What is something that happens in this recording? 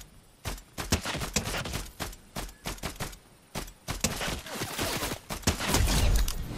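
A rifle fires single sharp shots in quick succession.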